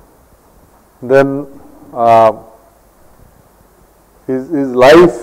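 A middle-aged man speaks slowly in short phrases through a microphone.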